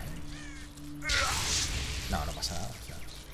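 A fiery magic blast whooshes and crackles.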